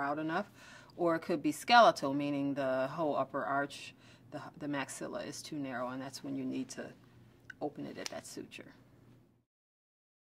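A woman speaks calmly and thoughtfully, close to a microphone.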